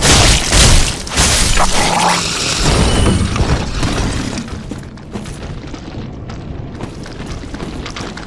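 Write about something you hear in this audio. Armored footsteps crunch through dry leaves.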